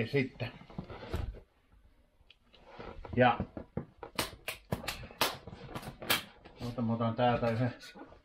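A cardboard box taps and scrapes on a table.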